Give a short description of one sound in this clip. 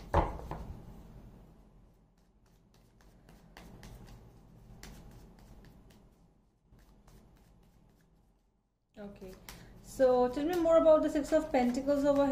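Playing cards shuffle and riffle softly in a woman's hands.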